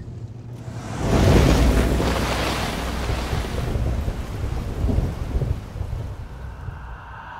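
A car roars past in heavy rain.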